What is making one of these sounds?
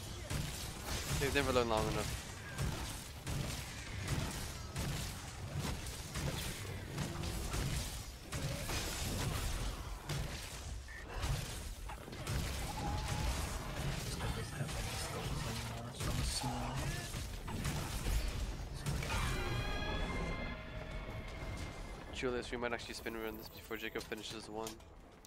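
A huge winged beast roars loudly.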